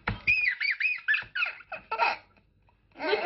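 A little girl squeals and laughs.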